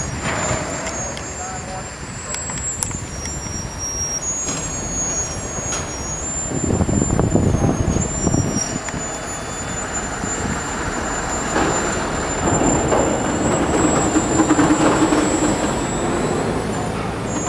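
A rail truck's diesel engine idles and rumbles nearby.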